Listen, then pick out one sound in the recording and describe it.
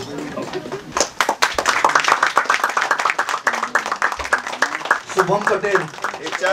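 A small group of people clap their hands in applause.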